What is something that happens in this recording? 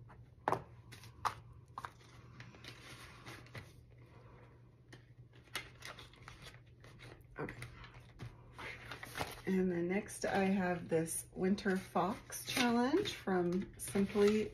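Paper bills rustle and crinkle in hands.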